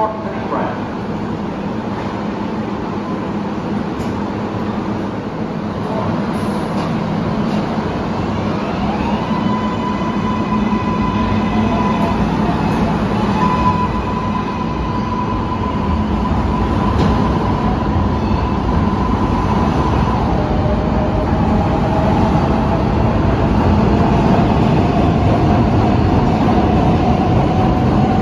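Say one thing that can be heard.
A subway train rumbles and screeches along the rails, growing louder as it pulls out.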